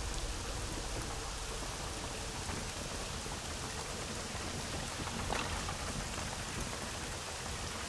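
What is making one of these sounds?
Footsteps patter quickly across roof tiles.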